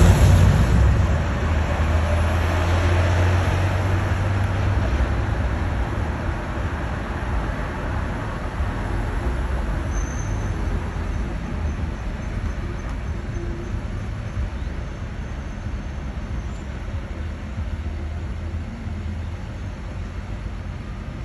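Car engines hum and tyres roll steadily on the street below.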